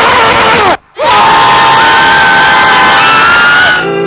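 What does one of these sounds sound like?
A group of young men and women shout and cheer together.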